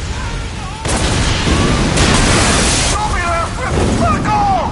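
A loud explosion roars and rumbles.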